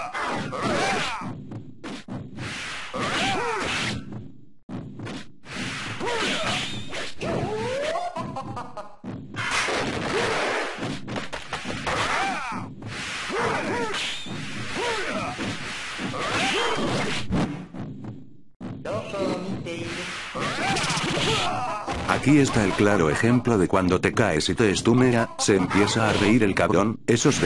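Swords slash and clash in a fast fight.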